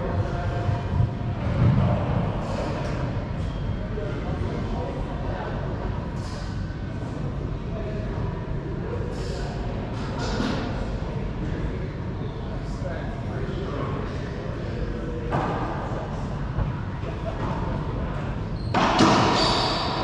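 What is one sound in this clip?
A rubber ball smacks off walls and rackets, echoing sharply in a large hard-walled court.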